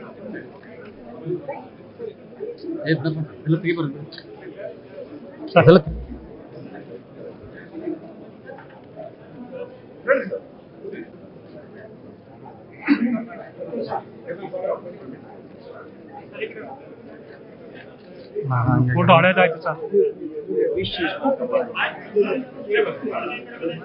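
Several men chat nearby in a low murmur.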